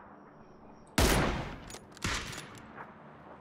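A rifle fires twice with loud cracks.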